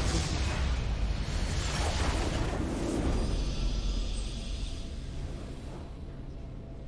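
Magical blasts and spell effects burst and crackle loudly.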